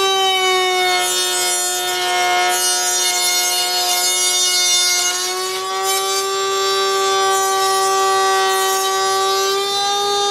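A router bit cuts through wood with a rough hiss.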